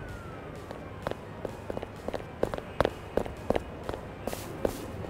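Footsteps run quickly across pavement.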